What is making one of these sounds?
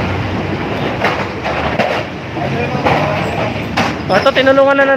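Clay pots knock and clatter as they are moved.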